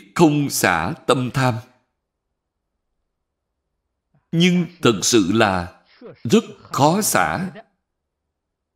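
An elderly man speaks calmly and slowly into a nearby microphone, pausing between phrases.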